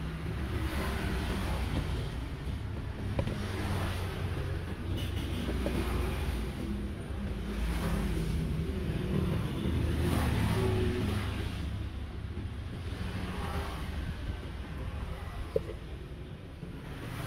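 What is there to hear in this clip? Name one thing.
A spatula scrapes food inside a plastic cup.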